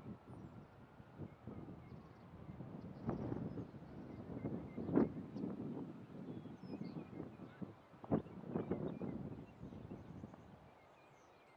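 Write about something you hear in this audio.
Wind gusts across open ground.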